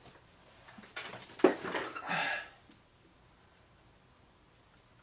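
Clothing rustles close by.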